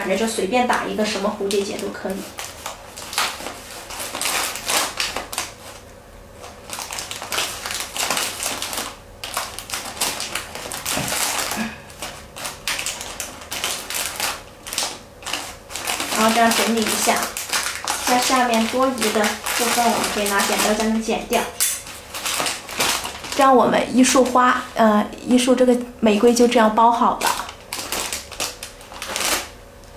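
Cellophane and paper wrapping crinkle and rustle as hands handle a bouquet.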